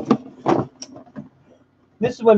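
Tangled cables rustle and clatter as they are handled.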